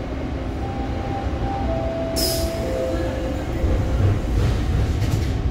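A subway train rumbles steadily as it rolls through a station.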